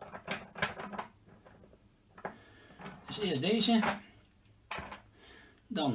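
Small metal parts click and clatter as they are handled.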